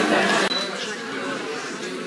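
Women talk quietly nearby in an echoing room.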